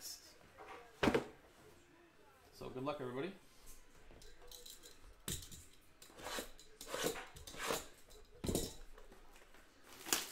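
Cardboard boxes knock and thud as a hand handles them.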